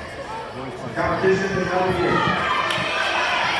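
Girls cheer loudly.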